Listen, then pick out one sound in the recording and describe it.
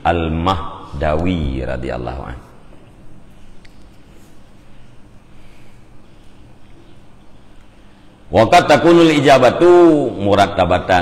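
A man speaks slowly and with feeling into a close microphone, pausing between phrases.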